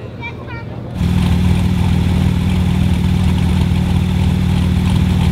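Two sports car engines idle with a deep, close rumble.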